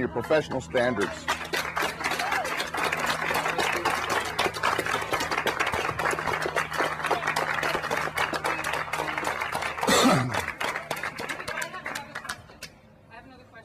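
A small crowd applauds.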